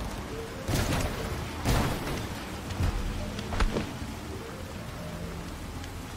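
A car engine rumbles as a car drives off.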